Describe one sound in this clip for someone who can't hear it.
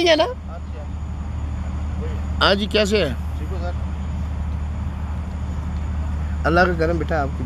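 Men talk and call out to each other outdoors.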